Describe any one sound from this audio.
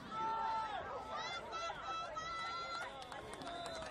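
Football players collide on the field.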